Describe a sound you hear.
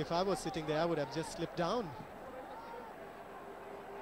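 A crowd cheers and shouts in a large open stadium.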